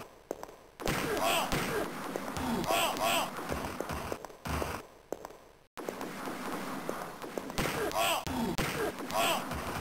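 A gun fires in loud, repeated blasts.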